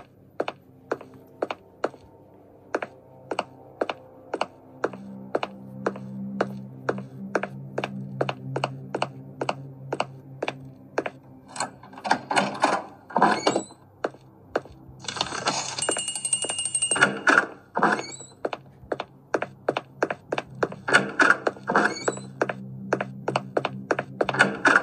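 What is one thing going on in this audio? Quick, even footsteps tap from a small tablet speaker.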